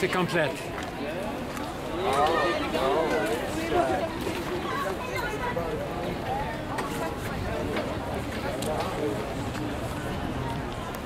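A crowd of men and women chatter nearby outdoors.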